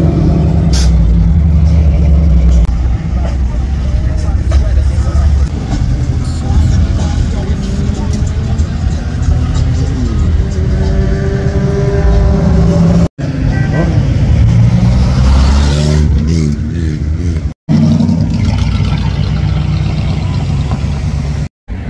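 Car engines rumble low as vehicles drive slowly past.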